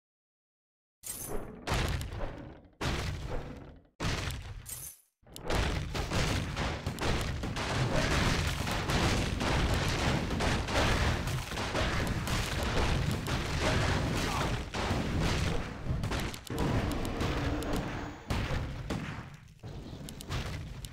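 Swords clash and spells burst in a busy fight.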